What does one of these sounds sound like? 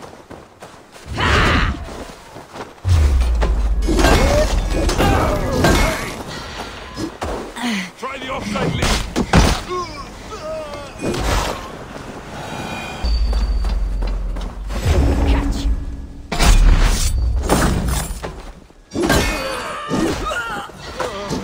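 Weapons clash and strike sharply in a fight.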